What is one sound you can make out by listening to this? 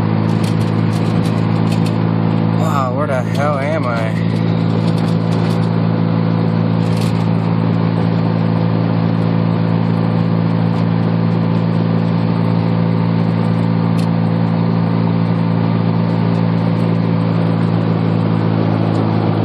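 Tyres roll on the road with a steady rushing noise.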